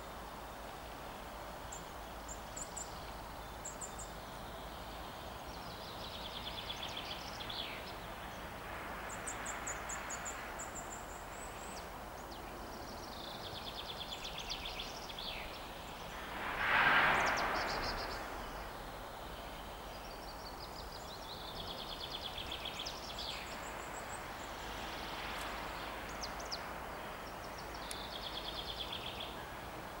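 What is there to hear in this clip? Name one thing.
Wind rustles softly through the trees outdoors.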